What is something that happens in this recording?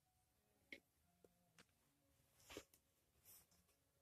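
A hand brushes softly across carpet.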